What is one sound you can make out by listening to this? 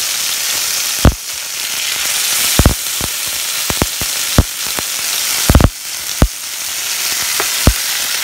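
A spatula knocks and scrapes against a pan.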